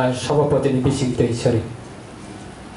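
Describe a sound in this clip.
A man speaks loudly through a microphone and loudspeaker.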